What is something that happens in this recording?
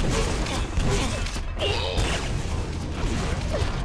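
A rocket explodes with a loud blast.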